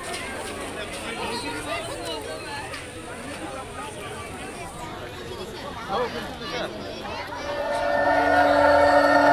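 A crowd of people chatter and shout all around, close by.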